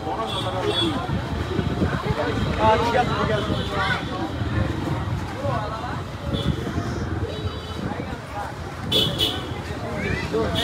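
Several young men talk nearby outdoors.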